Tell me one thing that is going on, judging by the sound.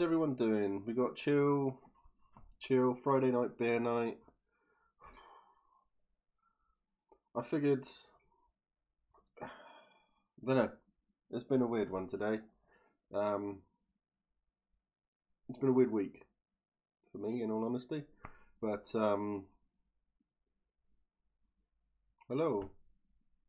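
A middle-aged man talks casually into a close microphone, in short bursts with pauses.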